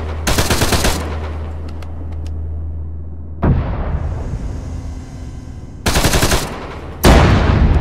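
A heavy cannon fires several loud booming shots.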